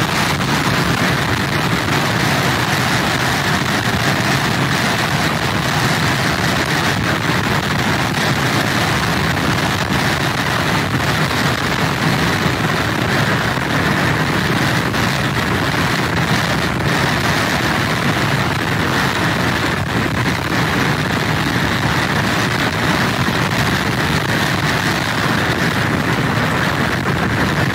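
Storm surf crashes and rumbles in the distance.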